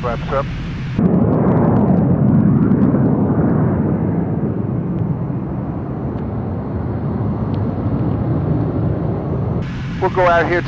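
A jet roars overhead outdoors and slowly fades.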